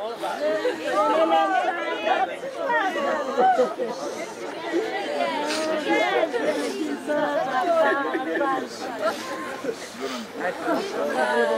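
Several women wail and sob loudly close by.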